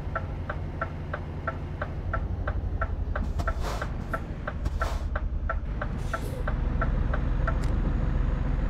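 A turn signal ticks quickly and evenly, then stops.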